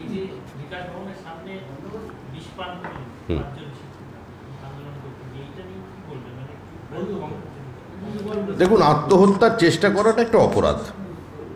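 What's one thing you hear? A middle-aged man speaks into microphones, calmly at first and then with growing animation.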